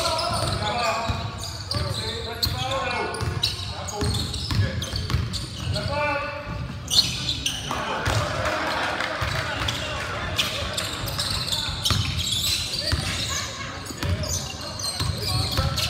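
A ball bounces on a wooden court.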